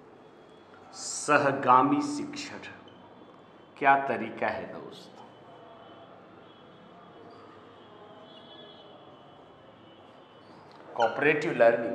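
A man speaks calmly and clearly nearby, in short bursts.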